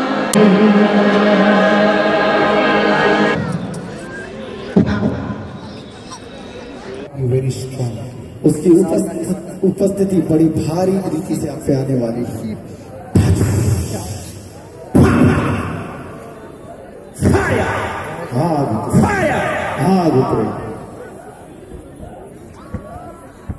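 A man speaks loudly and passionately into a microphone over loudspeakers.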